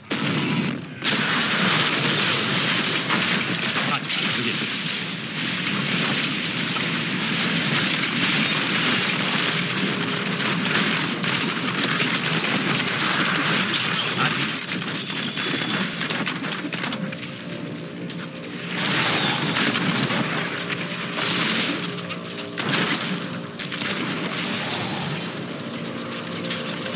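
Game spells blast and explode in rapid bursts of combat.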